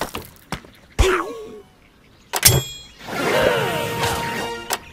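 A cartoon bird squawks.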